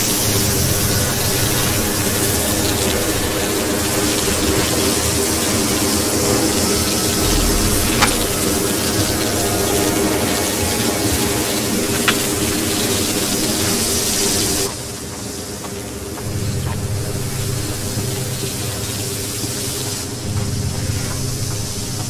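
Footsteps scuff slowly across a gritty floor.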